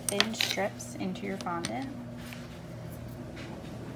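A craft knife blade scrapes along a wooden ruler.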